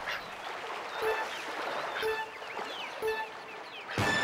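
Countdown beeps sound once a second.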